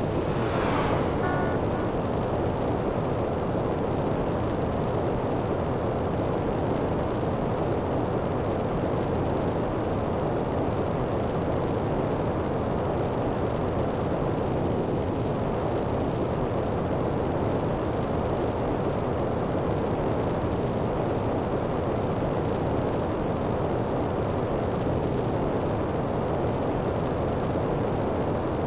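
A jetpack roars steadily as it hovers and flies.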